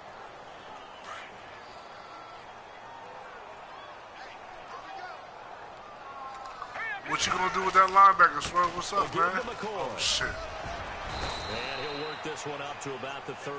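A stadium crowd murmurs and roars.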